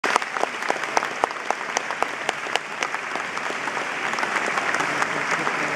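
An orchestra plays in a large hall.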